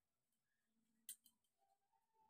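Leaves brush and tap against a metal pot as they are set into it.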